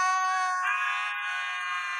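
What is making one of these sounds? A dog howls loudly.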